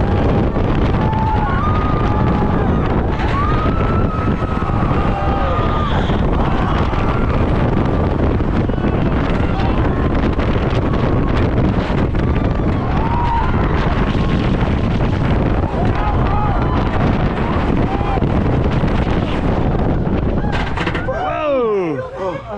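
A roller coaster rattles and rumbles along its track.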